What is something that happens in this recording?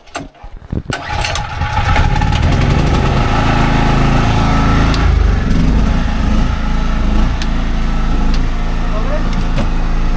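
A motor engine runs loudly and steadily.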